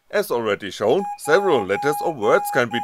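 A small electronic buzzer beeps in short, even bursts.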